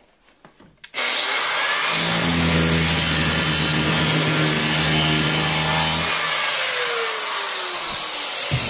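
An angle grinder whines loudly as its disc grinds against metal, then winds down.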